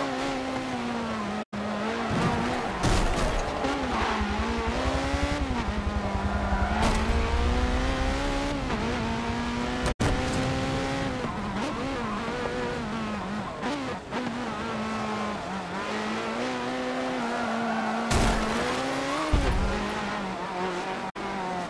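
A race car engine roars loudly, revving up and down as gears shift.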